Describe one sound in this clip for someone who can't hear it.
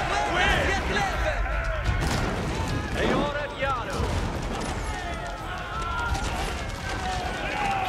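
Swords clash and soldiers fight in a battle.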